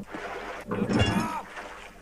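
A heavy wrench swishes through the air.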